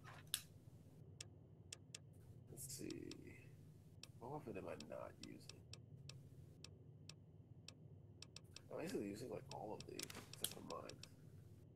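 Menu clicks tick quickly, one after another.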